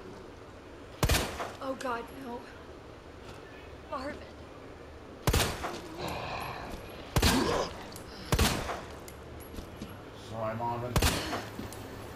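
A pistol fires loud single shots.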